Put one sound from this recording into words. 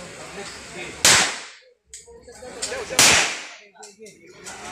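Pistol shots bang loudly outdoors and echo away.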